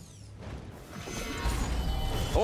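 Heavy blows and impacts crash in combat.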